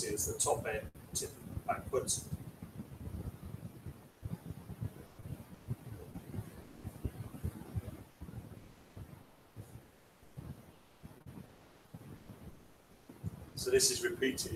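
A man speaks calmly in a room, heard from a distance.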